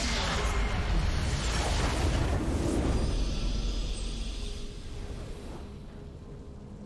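A game's base explodes with a loud, rumbling blast that slowly fades.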